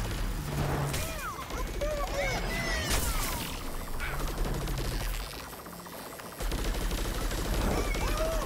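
Rapid laser shots fire and zap.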